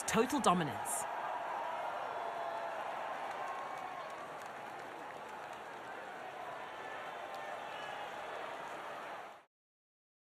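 A crowd cheers and applauds in the distance.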